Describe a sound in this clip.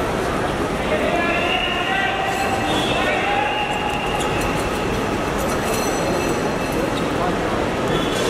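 Many voices of men call out and chatter in a large echoing hall.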